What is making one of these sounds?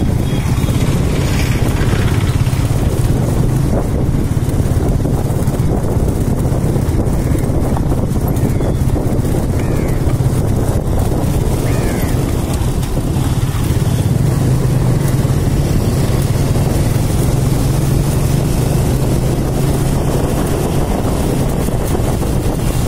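Wind rumbles against a moving rider outdoors.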